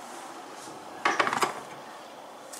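A kettle is set down on its base with a knock.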